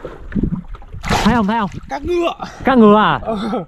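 Water splashes as a swimmer paddles close by.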